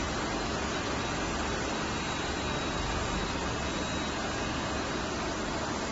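A ride's motor hums steadily.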